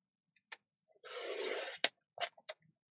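A paper trimmer blade slides and cuts through paper.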